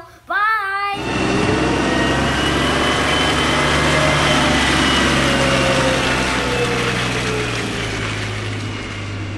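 Garbage tumbles and rustles as it is dumped onto a pile.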